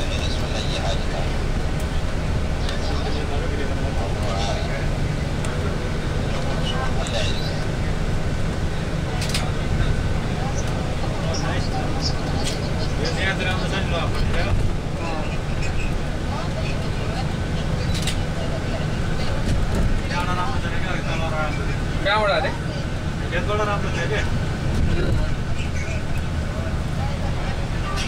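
A vehicle's engine rumbles from inside as it drives along a highway.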